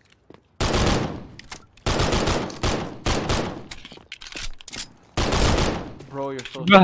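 Gunshots fire in quick bursts, each ringing out briefly.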